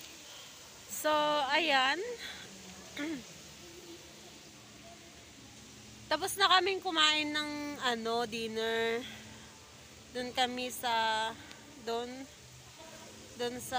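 A young woman talks close to a microphone, with animation.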